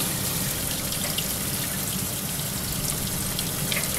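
Tap water runs and splashes.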